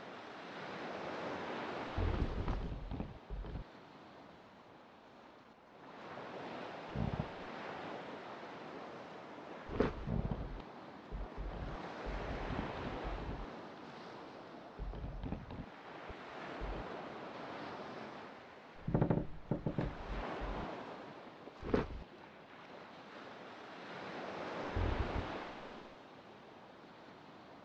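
Waves wash and surge in slow swells.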